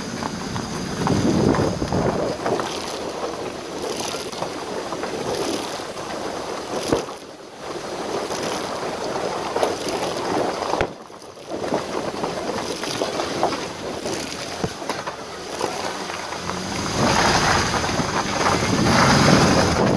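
Stones rattle and knock under a vehicle's tyres.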